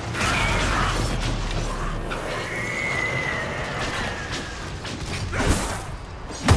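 Magical lightning crackles and roars loudly.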